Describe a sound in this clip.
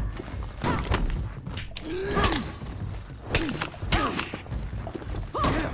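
Steel swords clash and ring sharply.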